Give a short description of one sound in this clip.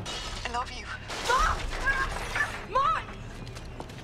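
A young woman speaks anxiously into a phone close by.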